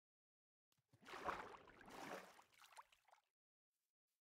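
Water splashes as something swims through it.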